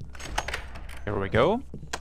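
A wooden door creaks open.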